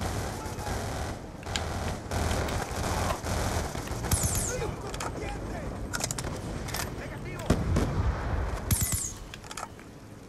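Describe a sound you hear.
A rifle fires in short bursts.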